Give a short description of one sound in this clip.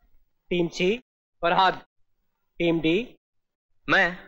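A young man speaks in short bursts.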